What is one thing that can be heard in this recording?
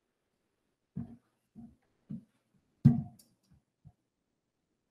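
Knocks and bumps sound close to a microphone.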